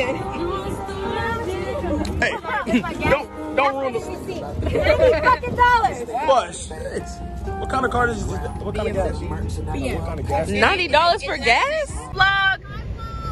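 Teenage girls talk and laugh excitedly close by, outdoors.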